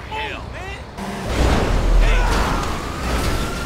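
A truck slams into a car with a loud crash.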